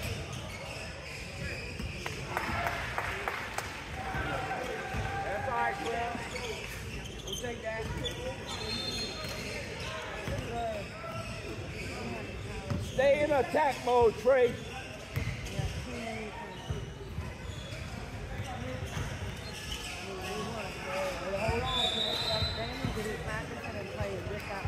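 A crowd of young people chatters in a large echoing gym.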